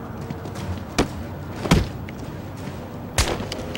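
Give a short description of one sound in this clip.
Heavy punches and kicks thud in a brawl.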